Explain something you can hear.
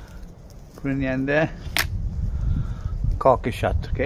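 A rifle's metal parts click as it is handled.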